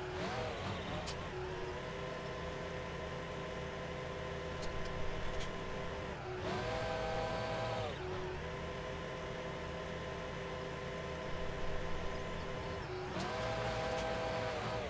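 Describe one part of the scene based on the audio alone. A tractor engine hums steadily, rising in pitch when it speeds up and falling when it slows.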